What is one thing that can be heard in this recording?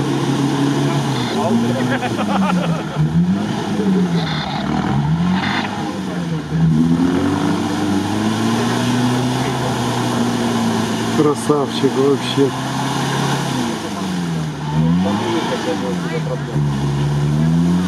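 Water and mud splash and churn under spinning tyres.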